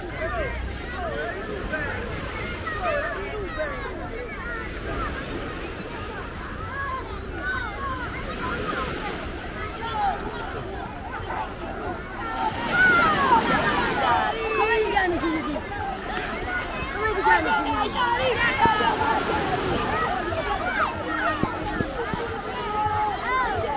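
A crowd of children and adults chatter and shout outdoors.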